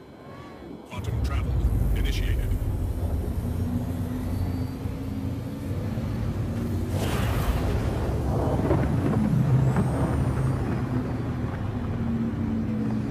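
A spacecraft engine rumbles low and steady.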